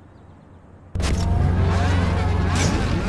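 A sports car engine rumbles and revs loudly.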